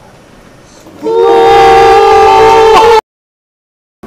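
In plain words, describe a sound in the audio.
A young man sings a long, steady note.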